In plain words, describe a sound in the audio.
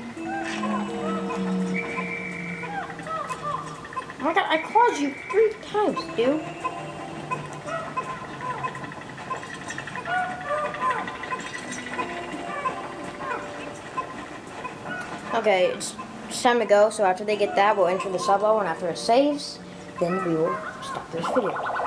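Light, playful music plays throughout.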